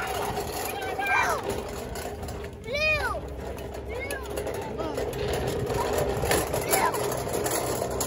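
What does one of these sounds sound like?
A young boy speaks loudly close by.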